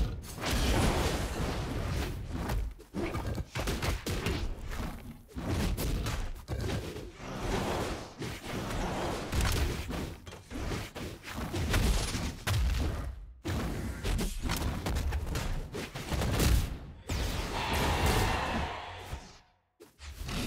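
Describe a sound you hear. Game fighters clash with quick thuds, hits and bursts of effects.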